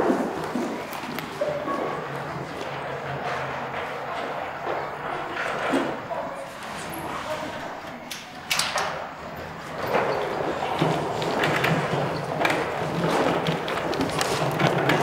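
Footsteps sound on a hard floor.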